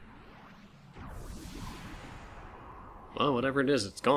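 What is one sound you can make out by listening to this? A magical cloud swirls with a rushing whoosh.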